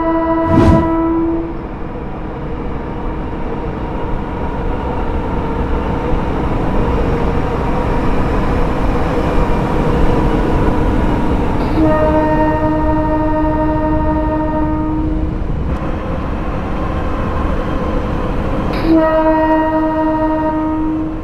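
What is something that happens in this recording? A train horn blares loudly several times.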